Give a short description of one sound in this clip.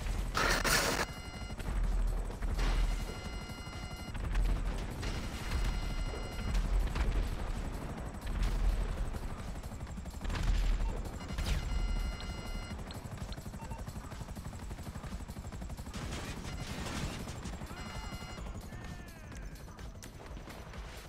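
A helicopter's rotor thuds loudly overhead.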